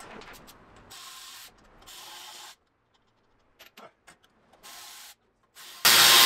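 A spray can hisses in short bursts.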